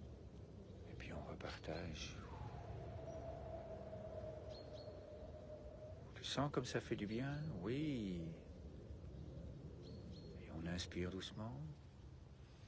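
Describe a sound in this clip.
An older man speaks slowly and calmly, close by.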